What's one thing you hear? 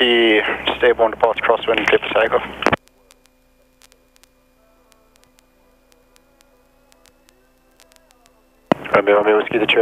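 A young man speaks calmly through a headset intercom.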